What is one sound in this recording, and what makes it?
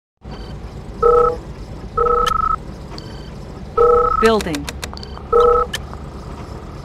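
Short electronic beeps sound from a game.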